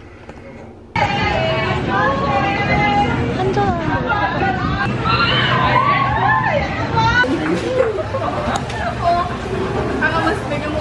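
A crowd murmurs in a busy street.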